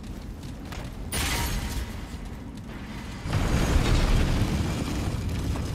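Metal weapons clash in a brief fight.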